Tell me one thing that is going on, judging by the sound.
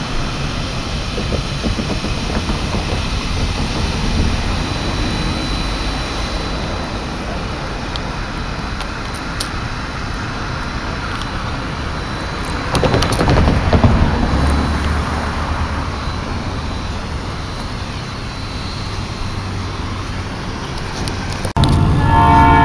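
A steam locomotive idles and hisses in the distance.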